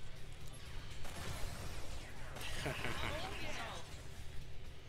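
Electric magic crackles and bursts loudly during a game fight.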